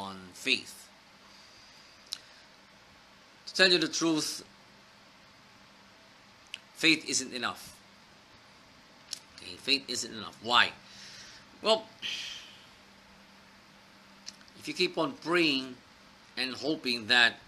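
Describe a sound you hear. A middle-aged man speaks calmly and close up, with pauses between phrases.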